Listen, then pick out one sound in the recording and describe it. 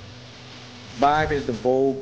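A woman speaks clearly to a room.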